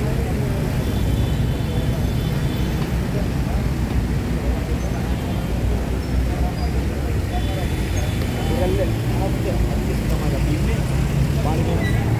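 Traffic rumbles steadily on a street.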